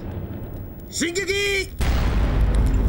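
A man answers with a short shout.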